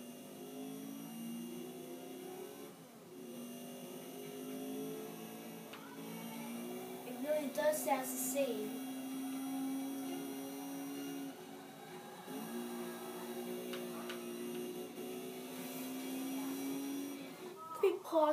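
A racing car engine roars and changes pitch through a television speaker.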